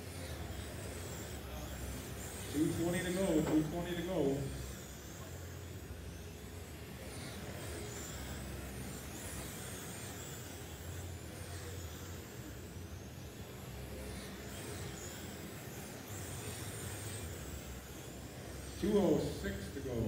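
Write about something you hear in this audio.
Tyres of model cars scrub and skid on a track.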